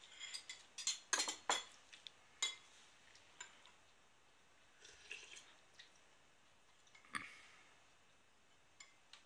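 Chopsticks and a spoon clink against ceramic bowls.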